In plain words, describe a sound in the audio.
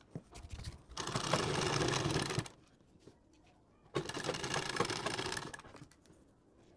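A sewing machine runs in short bursts, whirring and stitching.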